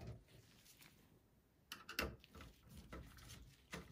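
A screwdriver turns a screw with faint clicks.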